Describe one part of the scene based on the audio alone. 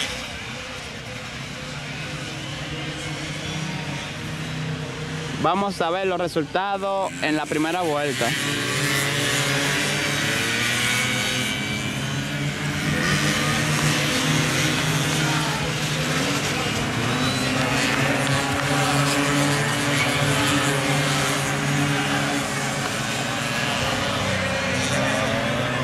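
Small motorcycle engines whine and rev as they race past.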